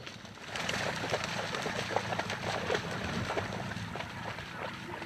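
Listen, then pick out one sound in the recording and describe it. A dog splashes as it runs through shallow water.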